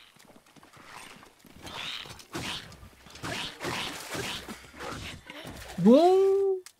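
Blows and clashing ring out in a fight.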